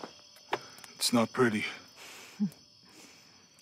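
A man speaks in a low, gentle voice.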